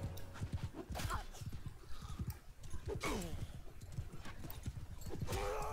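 Horse hooves thud rapidly on grass.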